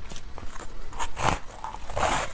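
A woman bites into crunchy food close to a microphone.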